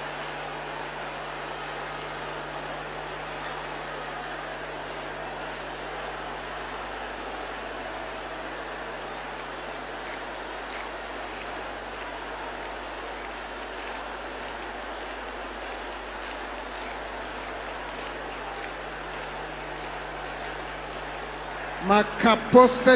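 A large crowd prays aloud together in a big echoing hall.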